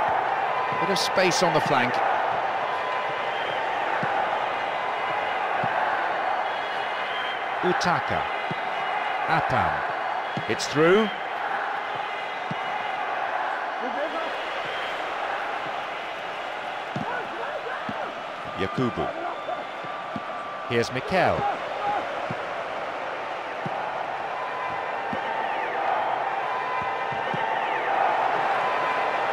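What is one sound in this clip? A large crowd roars steadily.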